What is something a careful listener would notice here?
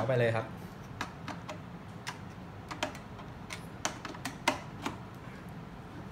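A plastic connector clicks and scrapes as it is plugged in.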